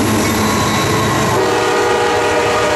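Freight cars clatter past on the rails.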